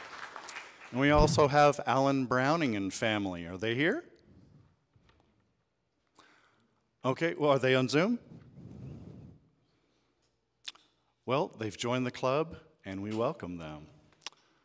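A man speaks into a microphone in pauses, heard through loudspeakers in a large room.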